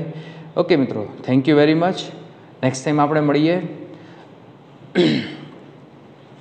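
A young man speaks calmly, close by, in a slightly echoing room.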